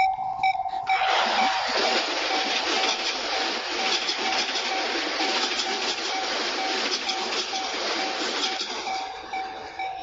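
An electric commuter train rumbles past over the crossing.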